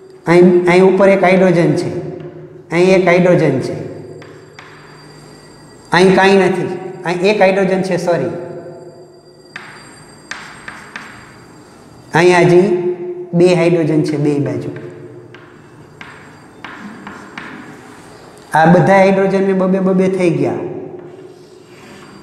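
An elderly man speaks loudly and steadily, as if teaching.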